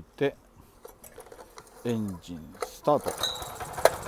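A man pulls a starter cord on a small engine.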